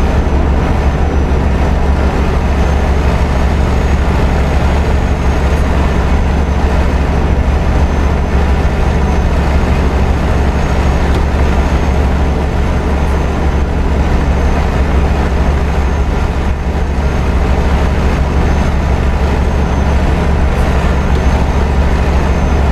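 A truck engine hums steadily and low.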